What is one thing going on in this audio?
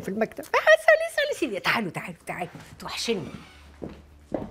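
A woman speaks with feeling close by.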